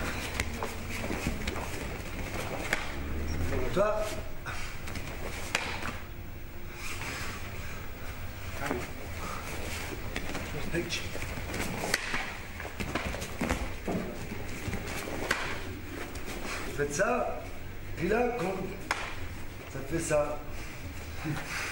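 Bare feet thump and slide on the mat.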